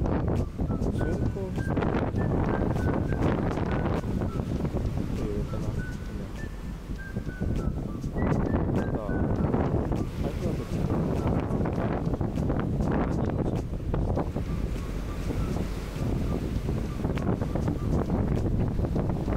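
Waves wash and churn against a ship's hull.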